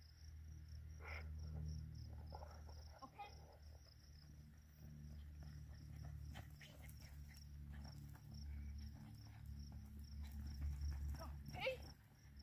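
A woman calls out to a dog with animation.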